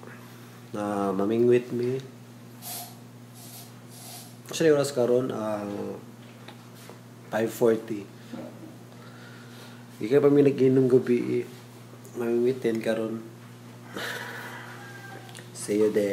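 A young man talks close to the microphone in short bursts, with pauses between.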